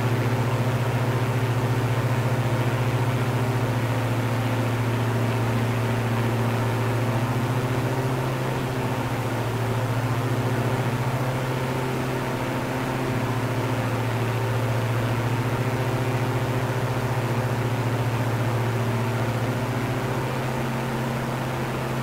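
Twin propeller engines drone steadily and loudly, their pitch shifting slightly now and then.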